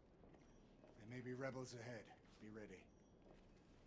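A man speaks in a low, tense voice.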